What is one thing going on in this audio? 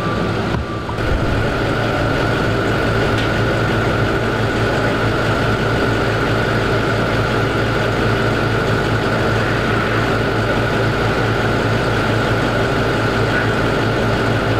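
A vehicle engine idles nearby with a steady low hum.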